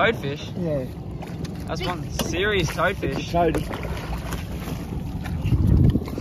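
Water splashes as a fish is scooped up in a net.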